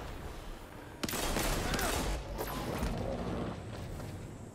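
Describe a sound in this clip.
A large blast roars with a bright burst of energy.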